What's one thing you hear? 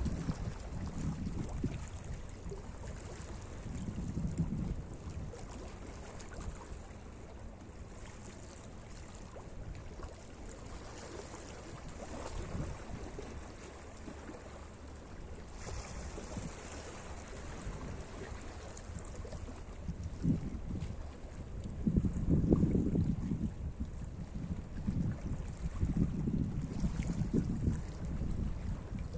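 Wind blows outdoors in low gusts.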